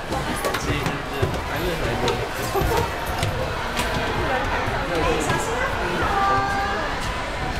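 Footsteps clatter on steps as children climb a staircase.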